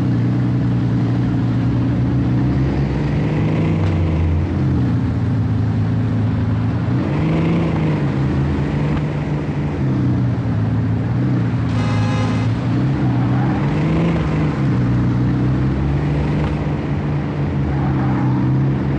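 A sports car engine hums and revs up and down as it drives.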